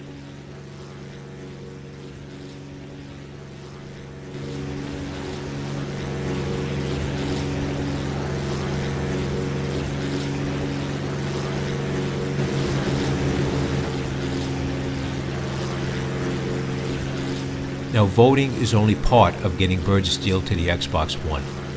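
Propeller aircraft engines drone steadily.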